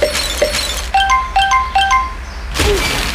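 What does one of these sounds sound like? Bright chimes ring out in quick short notes.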